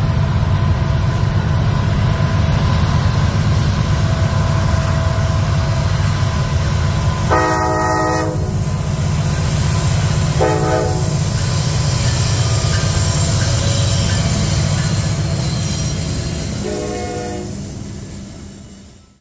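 Diesel locomotives rumble loudly as a freight train passes close by.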